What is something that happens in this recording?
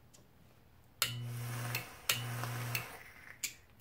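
An electronic vaporizer buzzes and sizzles as a man inhales.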